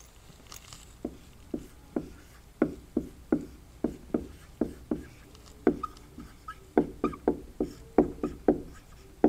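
A marker taps and squeaks on a whiteboard in short strokes.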